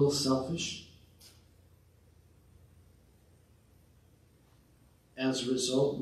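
An older man speaks slowly and solemnly into a microphone, with pauses.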